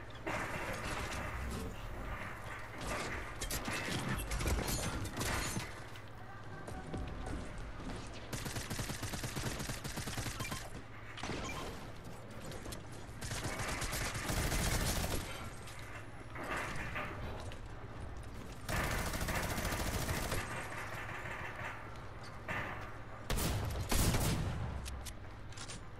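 A video game plays busy sound effects of building and hitting wood.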